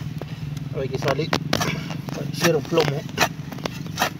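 A shovel chops and scrapes into grassy soil.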